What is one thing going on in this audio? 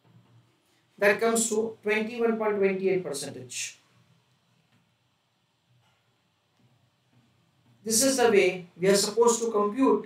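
A man speaks clearly and steadily into a close microphone, explaining.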